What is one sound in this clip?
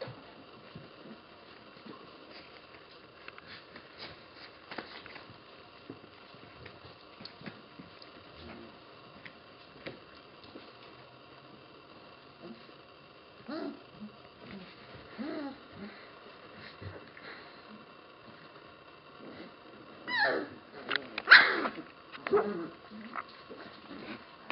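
Puppies scuffle and tumble on a soft blanket.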